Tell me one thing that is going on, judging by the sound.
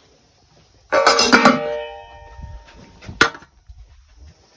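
A metal plate clatters.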